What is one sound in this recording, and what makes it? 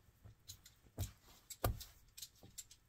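A clay cup knocks softly against a cloth-covered table.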